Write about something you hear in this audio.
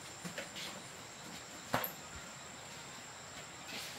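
Bare feet thump and creak on a bamboo bed.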